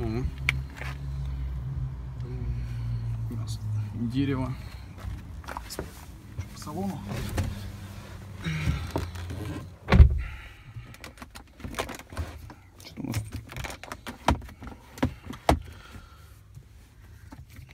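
Hands rub and tap against a car door's rubber seal and interior trim, with soft clicks and knocks.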